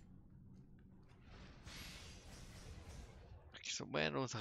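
A magical burst whooshes and crackles.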